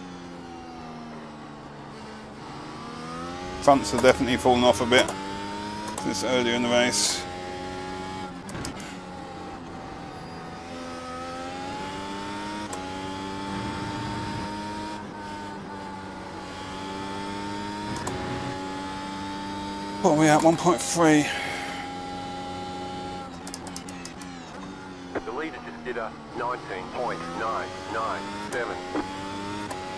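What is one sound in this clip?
A racing car engine roars and whines, rising and falling in pitch as gears shift.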